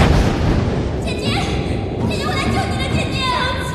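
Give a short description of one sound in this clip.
A young woman calls out with emotion, close by.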